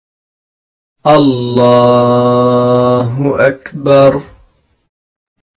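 A man chants a long, drawn-out call loudly.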